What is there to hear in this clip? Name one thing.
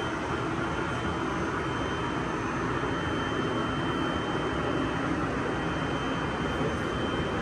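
Footsteps thud on a treadmill belt.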